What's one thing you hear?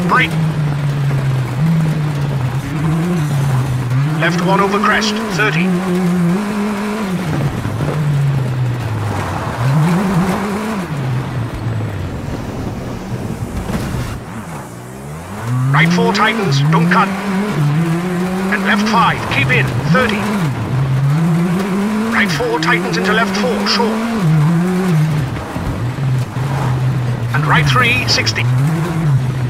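A rally car engine revs up and down as it shifts through gears.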